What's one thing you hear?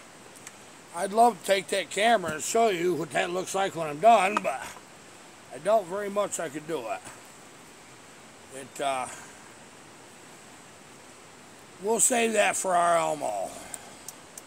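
An older man speaks with animation close by.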